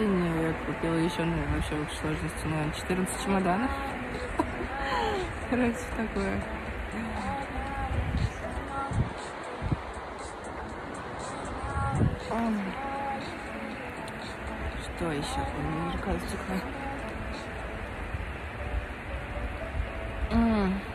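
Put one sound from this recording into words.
A young woman talks calmly and close to the microphone.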